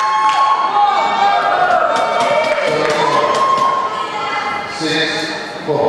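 Shoes squeak sharply on a hall floor, echoing.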